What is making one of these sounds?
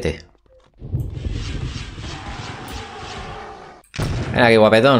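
A spell blasts with a rushing whoosh.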